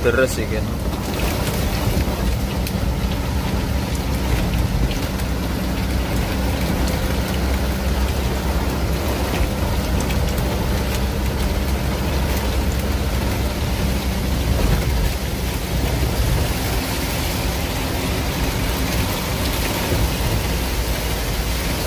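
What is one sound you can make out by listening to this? A truck engine rumbles steadily from inside the cab.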